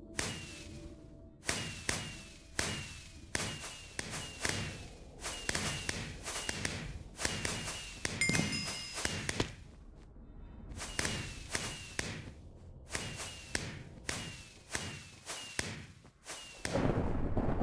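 Sharp bursts pop and crackle again and again, each with a short falling whistle.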